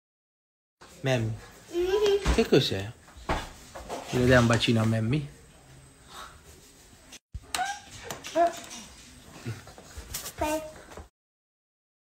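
A small child babbles and talks close by.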